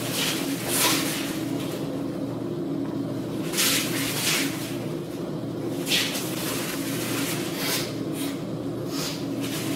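Bare feet slide and shuffle on padded mats.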